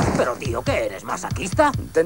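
A man speaks loudly and tensely.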